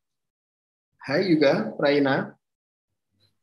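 A man speaks briefly and calmly through an online call.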